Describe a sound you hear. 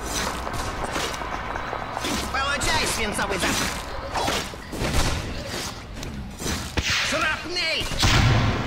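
Magic spells crackle and whoosh amid clashing weapons in a game battle.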